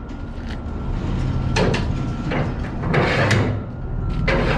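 A metal bar clanks against a trailer winch.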